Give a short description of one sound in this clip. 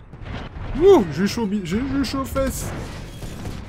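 A man exclaims loudly and excitedly close to a microphone.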